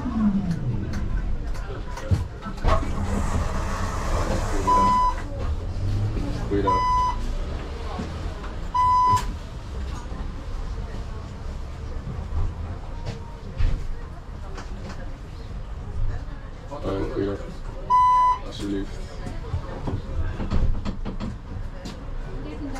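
Traffic rumbles steadily in the street outdoors.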